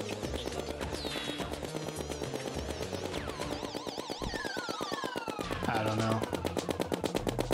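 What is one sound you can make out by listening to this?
Video game sound effects chirp and sweep up and down.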